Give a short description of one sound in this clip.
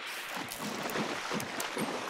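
Water splashes briefly.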